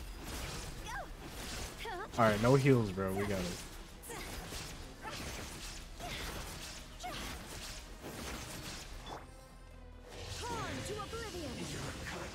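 Magical blasts and explosions crash in rapid bursts.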